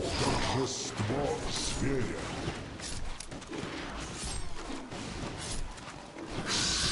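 Magic spells crackle and burst in a game battle.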